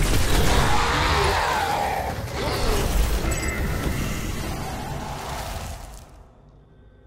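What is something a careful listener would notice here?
Guns fire in loud, rapid bursts.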